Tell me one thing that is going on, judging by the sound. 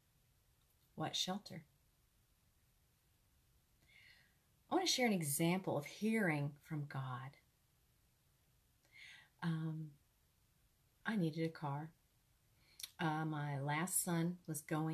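A woman speaks with animation close to a microphone, in short bursts with pauses.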